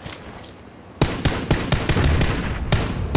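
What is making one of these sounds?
Rifle shots crack in a rapid burst close by.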